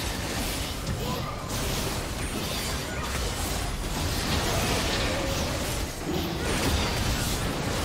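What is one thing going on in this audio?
Game battle effects crackle and clash as magic spells and blows land.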